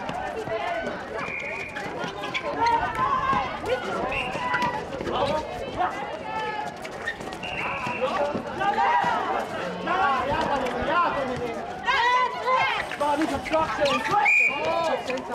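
Young men call out to each other during play.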